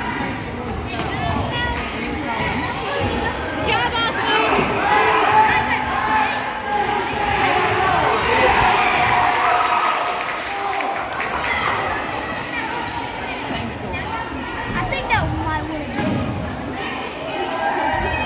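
A crowd of spectators cheers and calls out in a large echoing gym.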